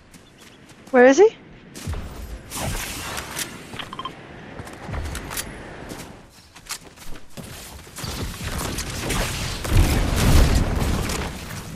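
Footsteps run through dry grass.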